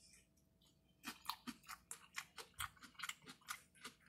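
A woman chews food with wet smacking sounds close up.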